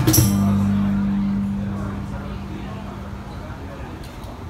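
An electric bass note rings out and slowly fades.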